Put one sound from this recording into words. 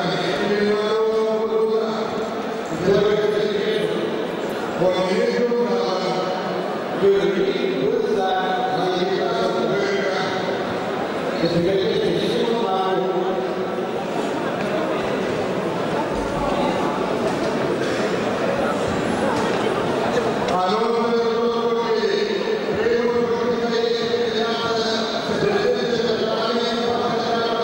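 A man announces through a loudspeaker in a large echoing hall.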